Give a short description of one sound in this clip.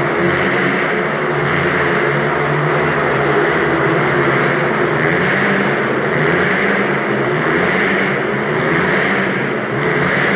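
Motorcycle engines roar and whine loudly as they race around inside a metal cage.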